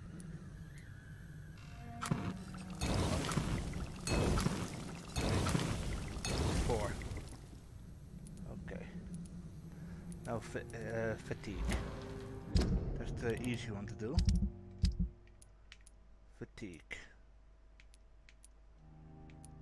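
Soft menu clicks and chimes sound as selections change.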